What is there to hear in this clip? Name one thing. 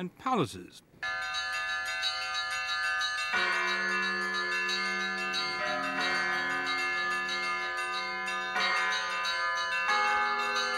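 Large bells ring loudly, with many tones overlapping and ringing on.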